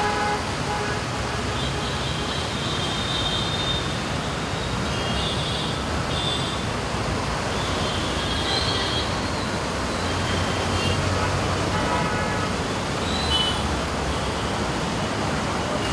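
Steady rain patters on leaves outdoors.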